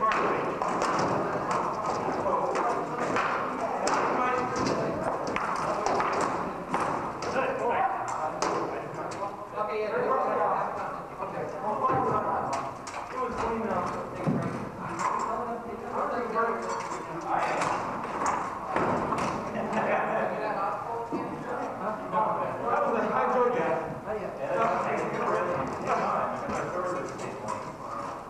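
Wooden practice swords clack together.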